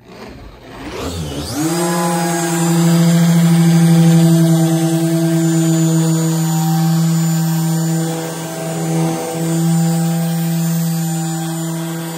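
An electric polisher whirs steadily as it buffs a surface.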